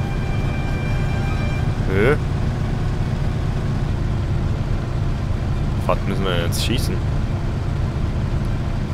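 An old car engine hums steadily as the car drives along.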